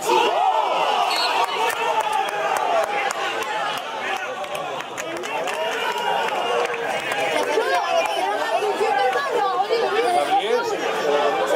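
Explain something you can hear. A crowd of spectators chatters and shouts close by outdoors.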